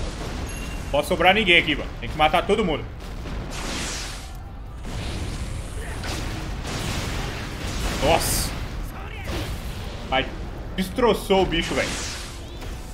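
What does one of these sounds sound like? A young man talks through a microphone.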